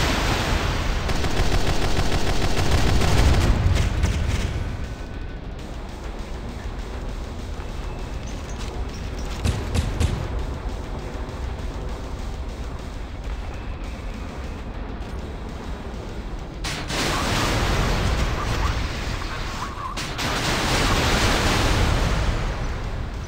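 Machine guns rattle in rapid bursts.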